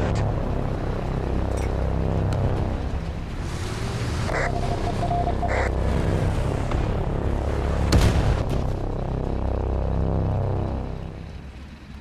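A heavy tank engine rumbles and clanks as the tank drives.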